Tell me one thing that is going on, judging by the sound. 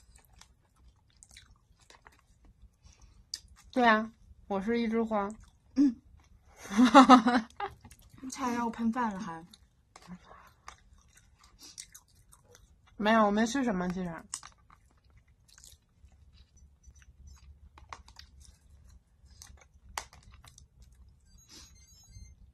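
A young woman bites and chews soft bread with quiet crunching.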